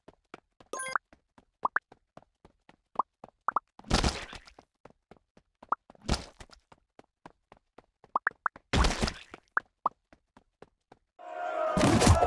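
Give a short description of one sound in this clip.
Short game chimes and pops sound now and then.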